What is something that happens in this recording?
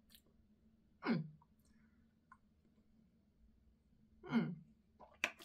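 A young woman groans in disgust close by.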